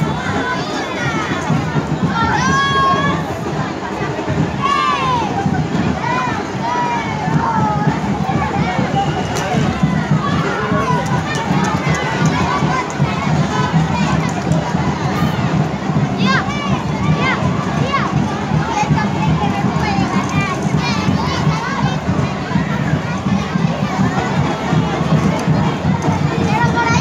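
A crowd of children and adults chatters and shouts outdoors.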